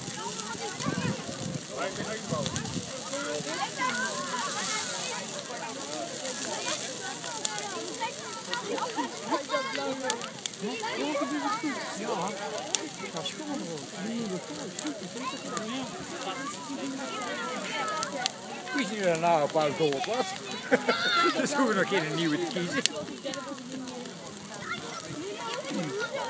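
A bonfire crackles and roars.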